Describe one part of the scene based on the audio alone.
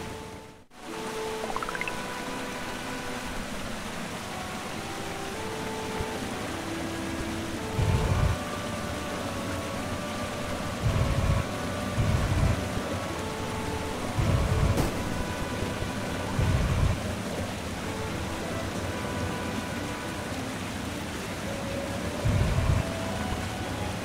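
Soft electronic game music plays with gentle melodic notes.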